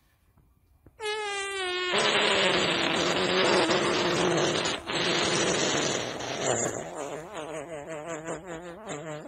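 A young man wails and sobs loudly close by.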